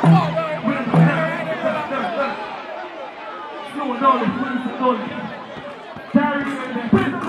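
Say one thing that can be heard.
A man speaks loudly into a microphone over loudspeakers.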